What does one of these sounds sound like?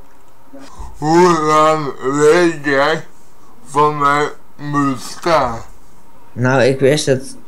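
A man talks excitedly over an online call.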